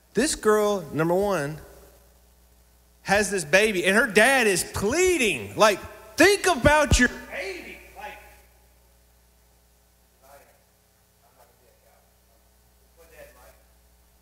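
A man speaks with animation into a microphone, heard through a loudspeaker in a large room.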